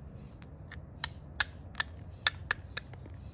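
A hammerstone strikes the edge of a flint with sharp, quick clicks.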